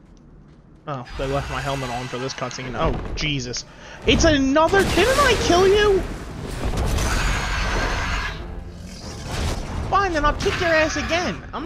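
A dragon roars loudly and shrieks.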